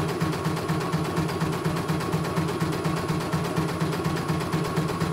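A sewing machine stitches with a fast, steady rhythmic whirr and clatter.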